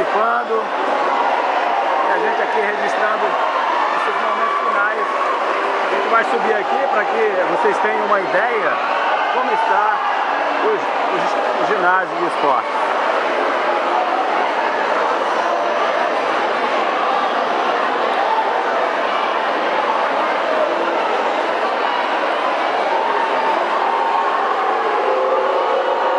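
A large crowd chatters and cheers loudly in a large echoing hall.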